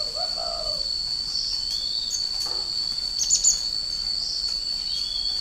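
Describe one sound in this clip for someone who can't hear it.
A small caged bird chirps and twitters in short bursts.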